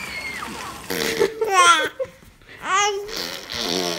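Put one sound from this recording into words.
A baby babbles close by.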